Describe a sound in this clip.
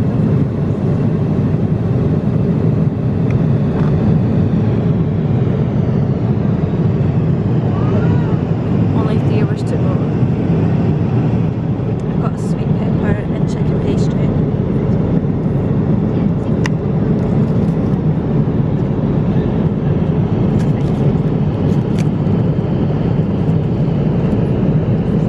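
A steady low roar of an airliner cabin fills the air.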